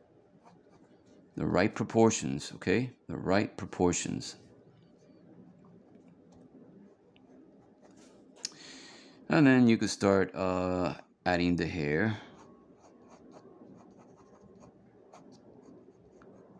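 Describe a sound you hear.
A pencil scratches lightly on paper.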